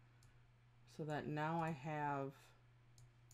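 A woman speaks briefly through a microphone.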